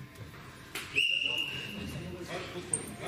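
A referee blows a sharp whistle once in a large echoing hall.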